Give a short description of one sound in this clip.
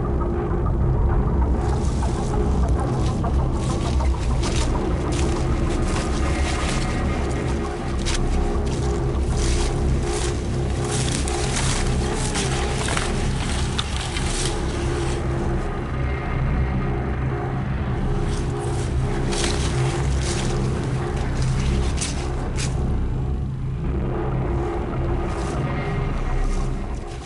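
Footsteps crunch through dry grass and fallen leaves.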